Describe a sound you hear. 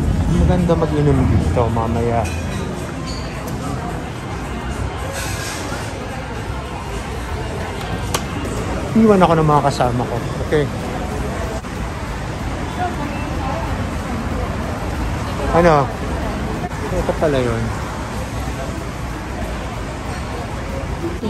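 Quiet chatter of people murmurs in the background.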